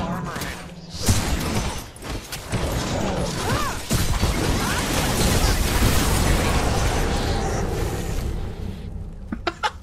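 Weapons strike and magic blasts crash in a loud fight.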